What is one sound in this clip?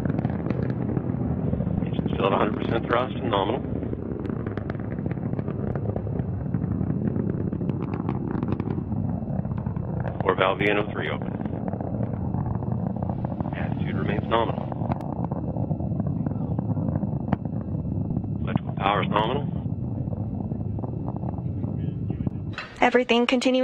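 A rocket engine roars with a deep, steady rumble.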